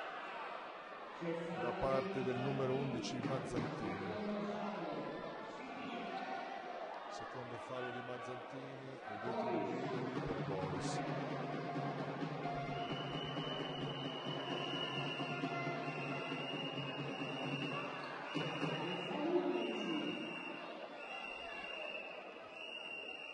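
A crowd of spectators murmurs and calls out in an echoing hall.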